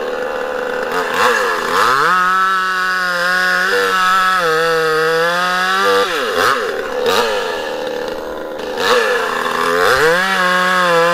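A two-stroke chainsaw cuts through a fresh alder log at full throttle.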